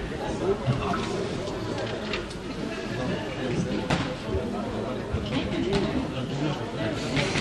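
A crowd of men and women chatters throughout a large echoing hall.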